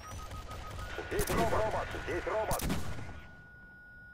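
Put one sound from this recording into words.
A heavy weapon fires with sharp blasts.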